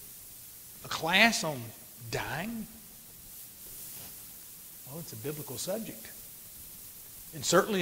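An elderly man speaks slowly and with feeling into a microphone.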